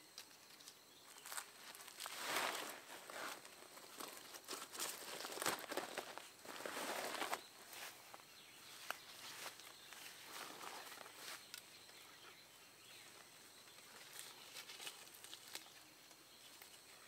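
Leaves rustle and twigs snap nearby.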